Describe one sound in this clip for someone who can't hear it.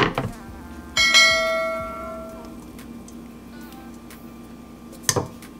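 Thick liquid pours into a metal strainer over a bowl.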